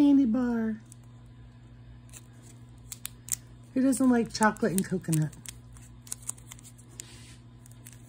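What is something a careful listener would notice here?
A plastic wrapper crinkles between fingers.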